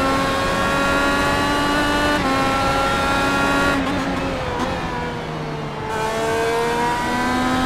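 A racing car engine screams at high revs, dropping in pitch on a gear change and braking, then climbing again.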